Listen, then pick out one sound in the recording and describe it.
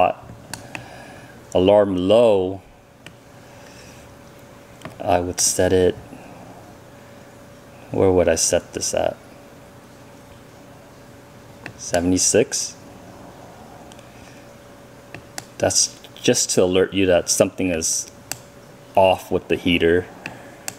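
A small plastic button clicks softly, again and again.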